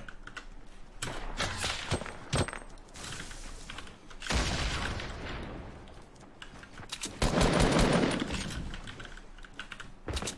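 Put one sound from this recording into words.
Wooden walls go up with quick knocking clicks.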